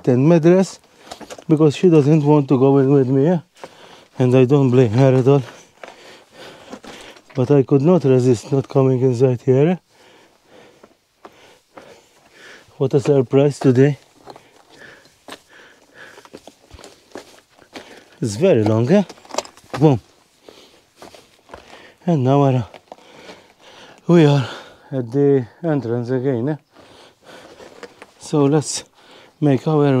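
A middle-aged man talks with animation into a clip-on microphone, close by.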